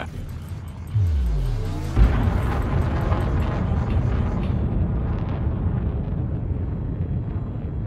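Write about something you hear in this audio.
A spacecraft engine rumbles deeply and steadily.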